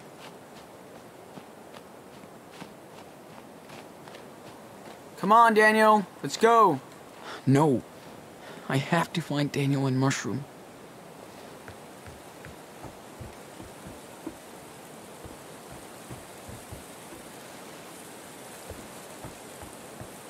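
Footsteps crunch softly in snow.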